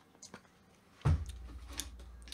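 A plastic bottle thuds down onto a desk.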